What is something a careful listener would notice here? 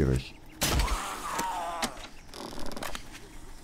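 A crossbow fires a bolt with a sharp twang.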